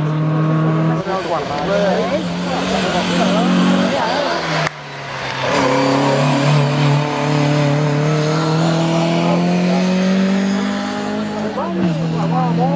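A second historic rally car revs hard through a hairpin and pulls away.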